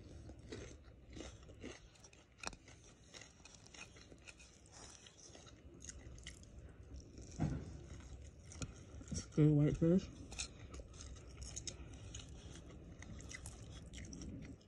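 Fingers pick at food on a plate with soft clicks and scrapes.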